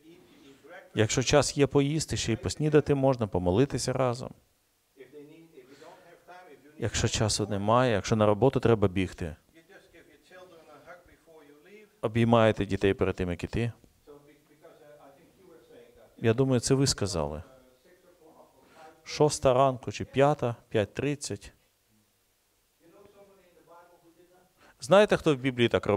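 An elderly man speaks with animation in an echoing room, in loud bursts with pauses.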